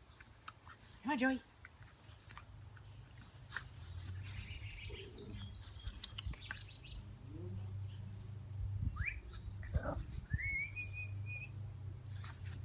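Small dogs yelp and whine as they play.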